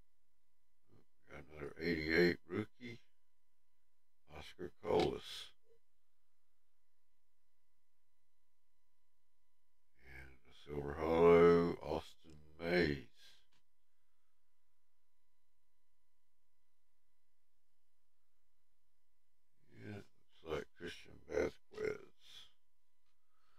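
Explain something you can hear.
An elderly man talks casually into a microphone, in short bursts.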